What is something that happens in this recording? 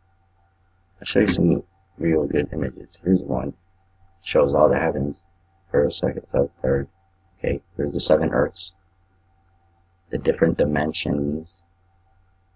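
A man talks calmly into a close microphone, in short bursts with pauses.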